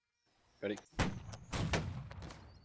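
Muskets fire with sharp cracks.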